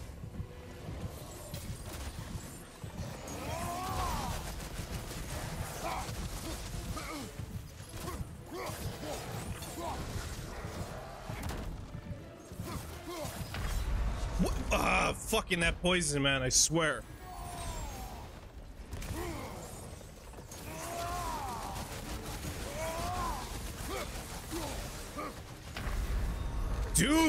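Heavy blows thud and clash in a fierce fight.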